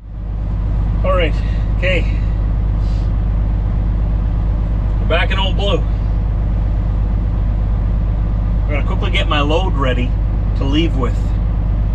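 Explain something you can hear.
A man speaks casually, close by.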